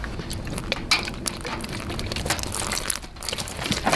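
Liquid pours and splashes into a metal bin.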